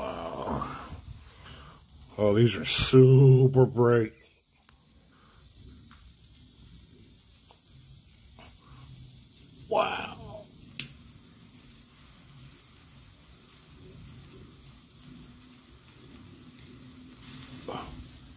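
Sparklers fizz and crackle close by.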